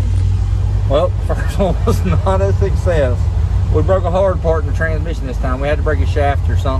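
A man talks casually, close to the microphone.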